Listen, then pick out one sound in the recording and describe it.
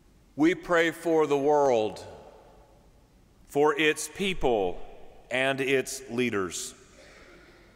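A man speaks slowly and solemnly into a microphone in a large echoing hall.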